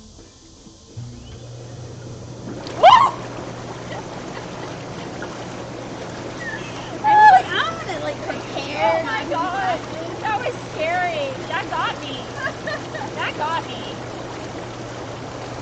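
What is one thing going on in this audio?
Water bubbles and churns steadily.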